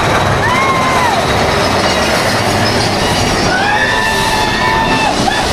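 A ride car rumbles and clatters loudly along a track.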